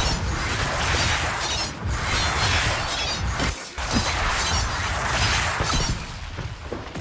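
Swords clash and magic blasts crackle in a fierce fight.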